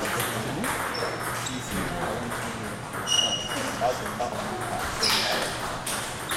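Table tennis balls click sharply against paddles and the table in a quick rally.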